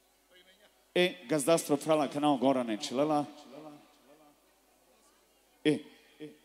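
A man sings loudly through a microphone and loudspeakers.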